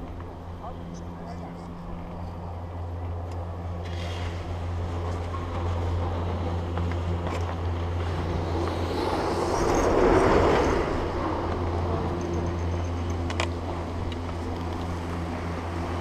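A chairlift's drive station hums steadily.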